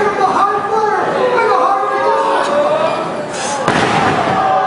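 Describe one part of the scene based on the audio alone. A wrestler crashes down onto the mat from a height.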